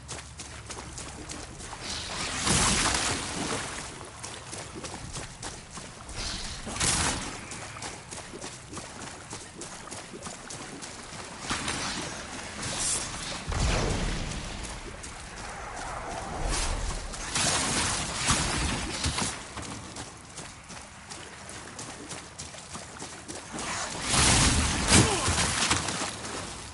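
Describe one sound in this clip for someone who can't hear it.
Quick footsteps patter on rocky ground.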